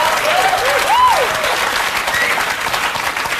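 Women in an audience whoop and scream with excitement.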